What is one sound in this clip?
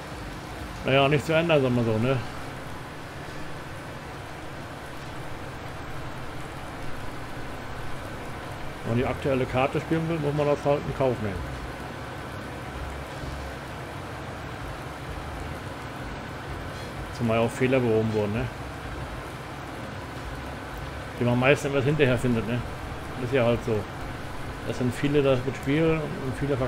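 A middle-aged man speaks calmly into a close microphone, in short bursts.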